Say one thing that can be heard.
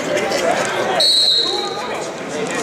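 A referee blows a whistle briefly.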